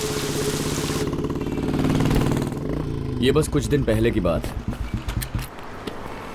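A motorcycle engine idles.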